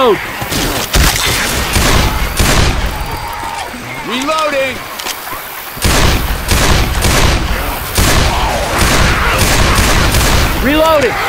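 A pistol fires sharp shots in quick bursts.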